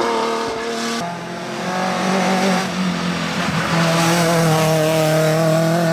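A second racing car engine roars past, revving hard.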